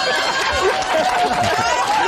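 An elderly man laughs loudly close by.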